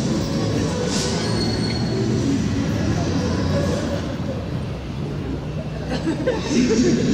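A crowd of people murmurs outdoors in a busy street.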